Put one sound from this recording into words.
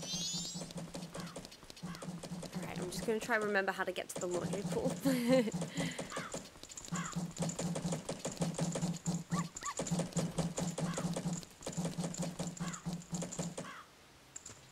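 Quick footsteps patter steadily on stone.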